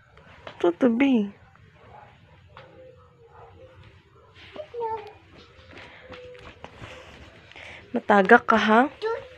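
A young girl squeals and chatters excitedly close by.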